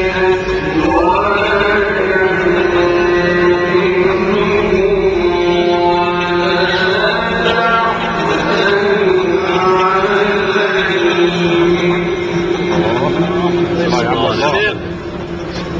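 An elderly man chants in a long, melodic voice through a microphone and loudspeakers.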